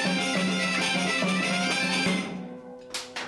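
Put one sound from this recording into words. Bagpipes play a loud droning tune up close.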